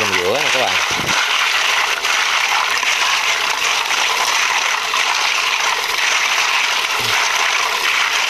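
Running water splashes steadily into a basin.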